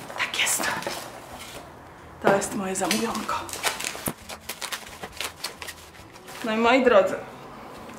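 Plastic bubble wrap crinkles and crackles in hands.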